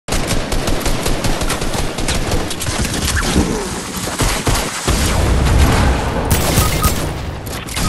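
Gunshots crack rapidly.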